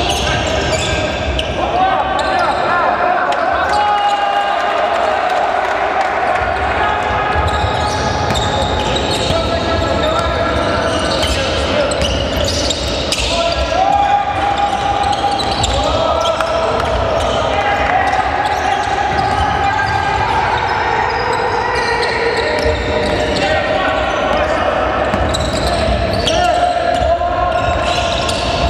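Basketball shoes squeak sharply on a hard court.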